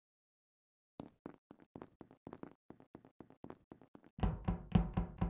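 Quick footsteps patter steadily.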